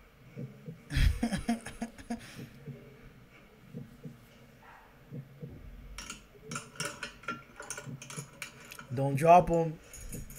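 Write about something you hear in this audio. A young man talks into a microphone, close and relaxed.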